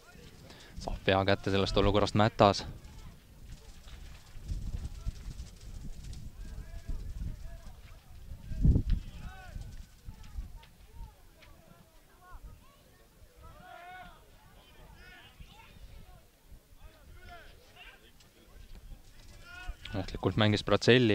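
Men shout loudly across an open outdoor field.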